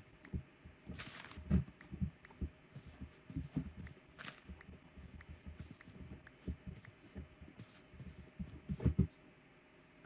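Footsteps thud softly on grass in a game.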